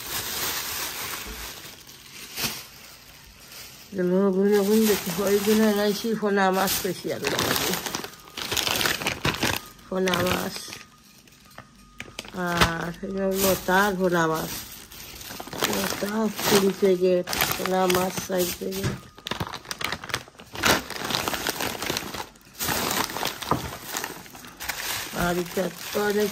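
Plastic bags rustle and crinkle as a hand rummages through them.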